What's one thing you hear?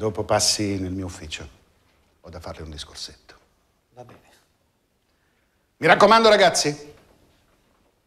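A middle-aged man speaks firmly and loudly nearby.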